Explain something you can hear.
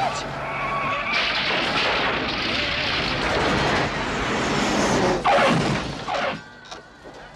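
A car crashes through a wall with a loud smash.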